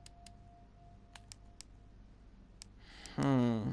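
Menu clicks tick softly in quick succession.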